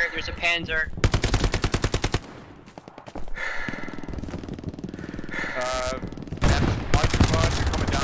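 A submachine gun fires rapid, loud bursts.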